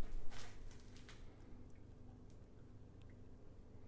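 Liquid pours gently into a container.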